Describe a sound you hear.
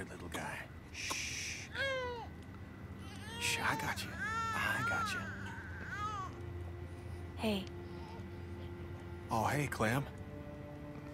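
A baby cries and whimpers.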